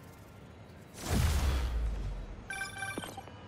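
A deep whoosh swells and fades.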